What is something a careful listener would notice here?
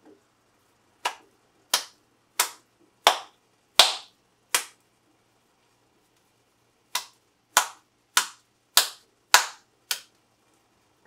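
A meat patty slaps repeatedly between two hands.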